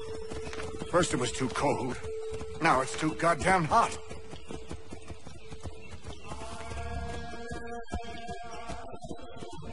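Horses' hooves gallop over soft ground.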